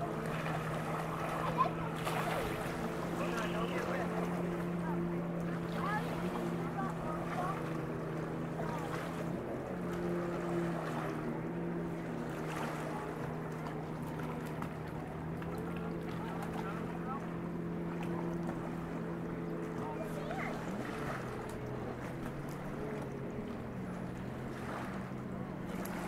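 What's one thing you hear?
A motorboat roars past at speed.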